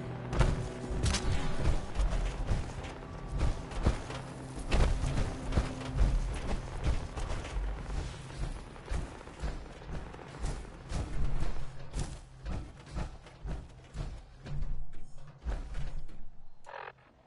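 Heavy armoured footsteps thud steadily on rough ground.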